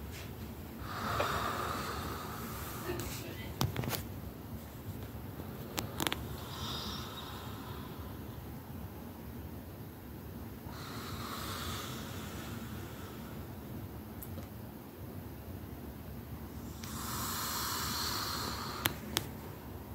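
A man growls and hisses close by, in short breathy bursts.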